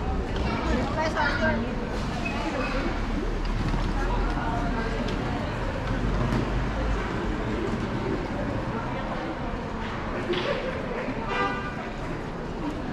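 Traffic hums steadily along a city street.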